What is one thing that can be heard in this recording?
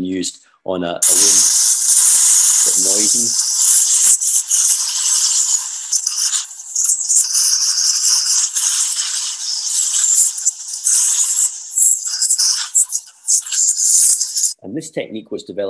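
A water jet hisses loudly as it sprays.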